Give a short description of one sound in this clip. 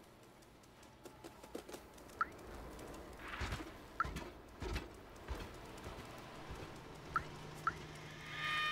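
A cat's paws patter softly on a hard floor.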